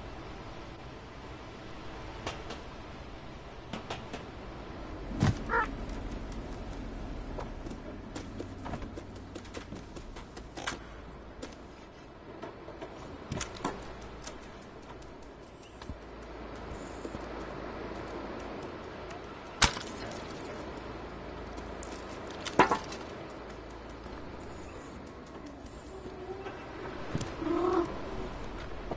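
A cat's paws patter softly as it runs and jumps.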